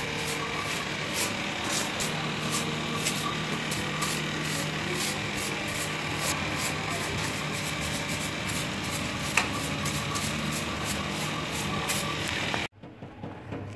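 A broom sweeps across a concrete floor.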